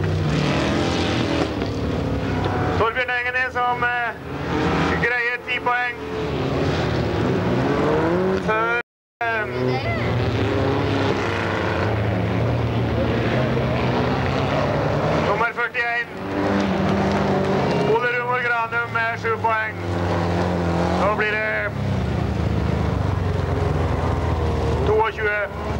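Racing car engines roar and rev up and down.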